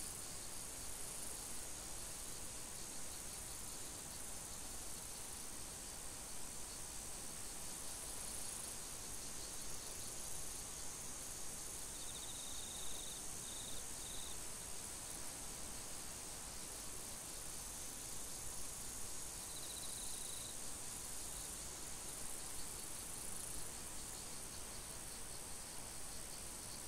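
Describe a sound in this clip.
Wind rustles steadily through tall dry grass outdoors.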